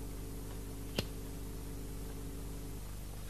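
A cigarette lighter clicks and flares.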